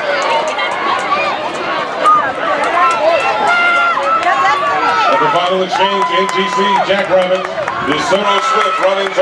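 A crowd of spectators cheers and shouts loudly outdoors.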